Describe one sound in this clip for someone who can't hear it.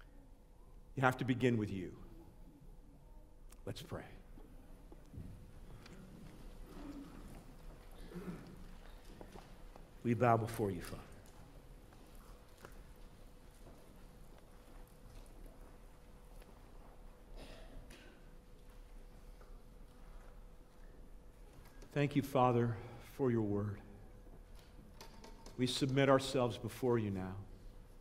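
A middle-aged man speaks slowly and emotionally into a microphone in an echoing hall, with long pauses.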